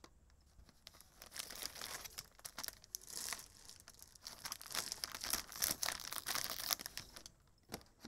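Plastic wrapping crinkles and rustles as it is handled.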